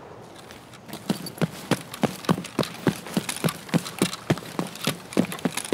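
Footsteps run quickly over dry ground and grass.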